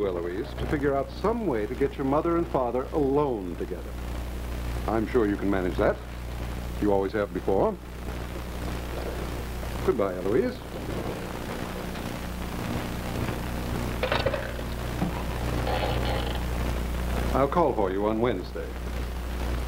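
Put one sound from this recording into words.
A man speaks loudly with animation, in short bursts.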